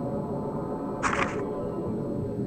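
A page flips with a short papery swish.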